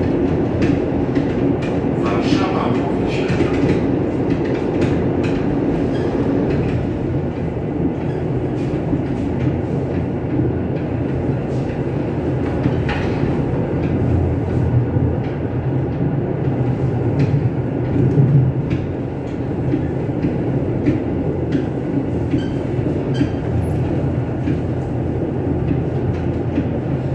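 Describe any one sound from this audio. Wheels click over rail joints and switches.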